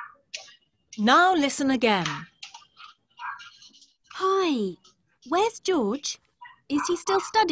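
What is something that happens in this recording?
A young child speaks over an online call.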